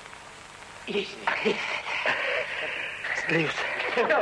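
A group of men laugh and cheer.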